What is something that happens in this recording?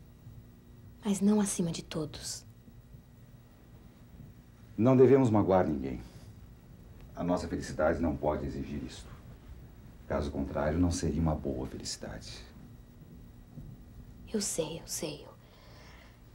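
A woman speaks with surprise, close by.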